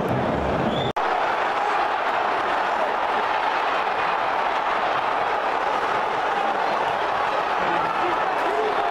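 A large stadium crowd murmurs and cheers steadily in a wide open space.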